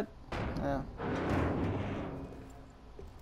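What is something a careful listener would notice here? A heavy metal door swings open with a grinding creak.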